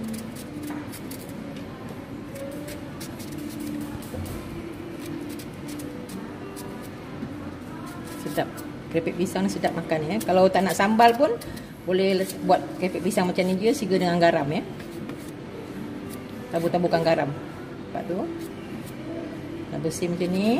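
A knife scrapes and shaves the tough skin off a green fruit, close by.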